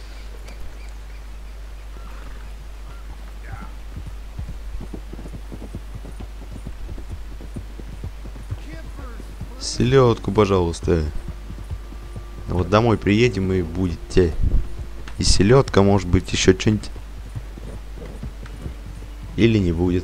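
Hooves clop as a horse trots along.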